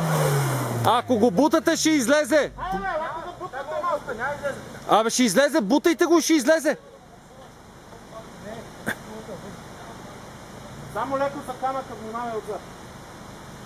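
Men talk and call out nearby outdoors.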